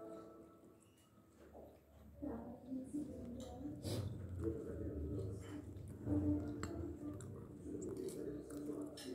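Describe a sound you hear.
A metal spoon clinks and scrapes against a bowl.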